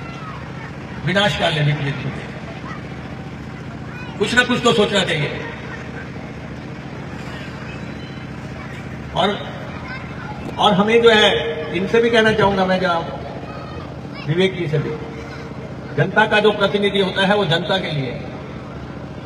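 A man speaks forcefully into a microphone through a loudspeaker, in bursts with pauses.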